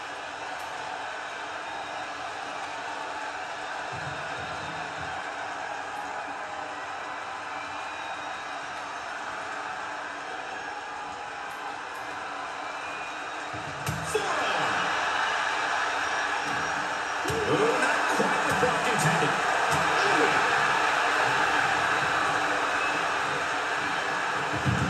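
A large crowd cheers and roars, growing louder midway.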